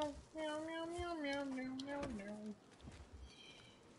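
A car door creaks open.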